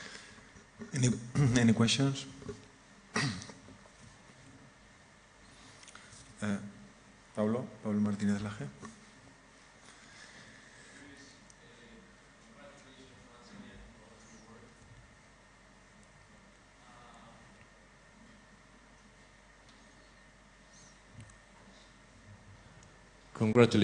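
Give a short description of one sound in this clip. A man speaks into a microphone, pausing often.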